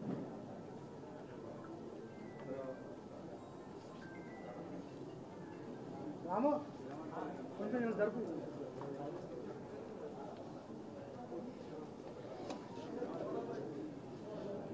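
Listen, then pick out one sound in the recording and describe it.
A crowd of men murmurs and talks nearby.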